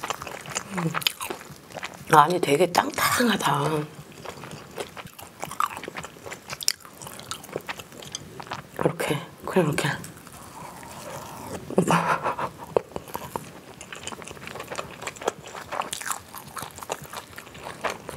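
A young woman chews food with wet, crunchy mouth sounds close to a microphone.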